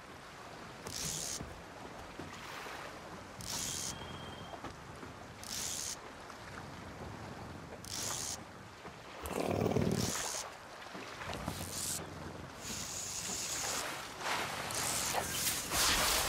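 Gentle water laps nearby.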